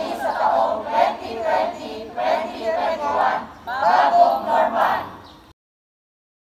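A group of young men and women chant and cheer together loudly.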